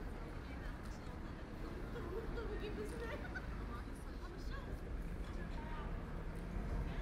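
A city street hums steadily with low, distant traffic noise.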